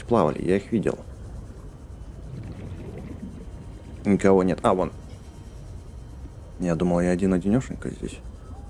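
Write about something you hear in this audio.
A small underwater vehicle's motor hums low and steady.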